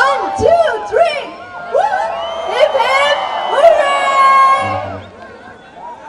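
A young woman sings through a microphone over loudspeakers.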